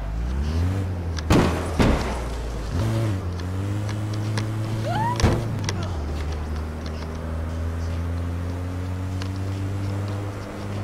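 A van engine hums and revs as it drives.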